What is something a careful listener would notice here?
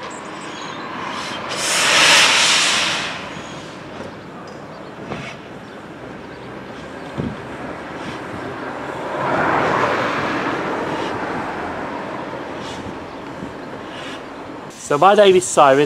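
A steam locomotive chuffs and hisses as it pulls away.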